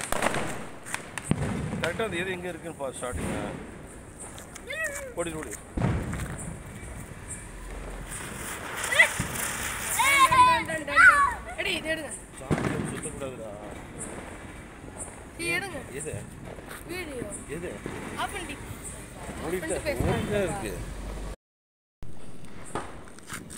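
Firecrackers on the ground hiss and crackle as they spray sparks.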